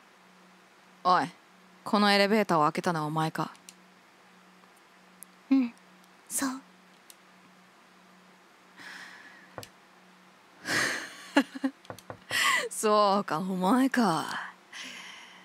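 A young woman talks animatedly into a microphone, close by.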